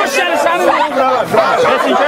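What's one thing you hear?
An elderly man shouts angrily.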